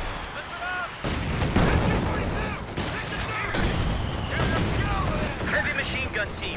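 Gunfire rattles and explosions rumble in a battle.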